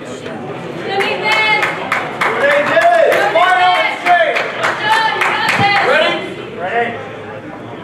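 Several men shout and cheer loudly.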